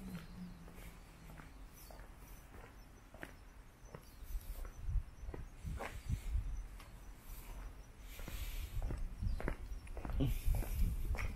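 Footsteps tap and scuff on stone steps close by.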